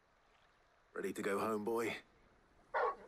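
A man speaks calmly.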